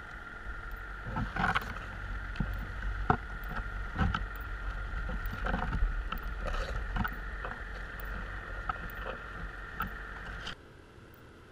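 Water rumbles and churns low around the trap.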